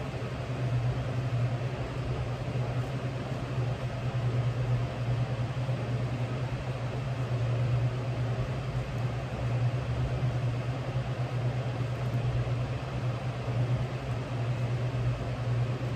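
A sewing machine motor hums steadily.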